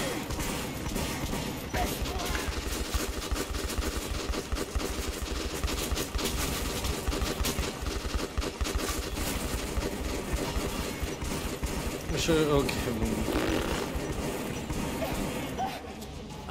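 Footsteps crunch along a hard floor.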